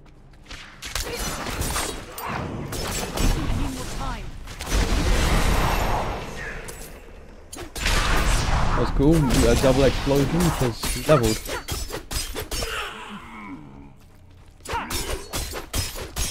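Swords slash and strike enemies with sharp impacts.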